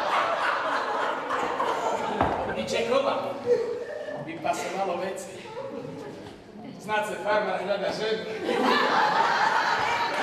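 A woman speaks with animation, acting on a stage in a hall.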